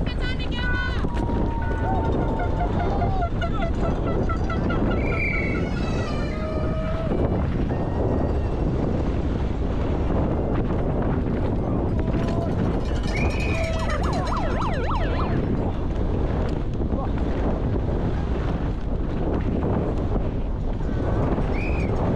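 Bike tyres rattle and crunch over a rough dirt and gravel track.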